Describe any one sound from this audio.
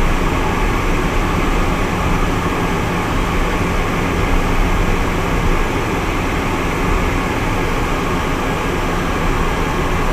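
Air rushes steadily past the cockpit.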